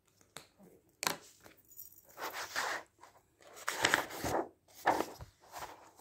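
Magazine pages rustle and flap as they are turned.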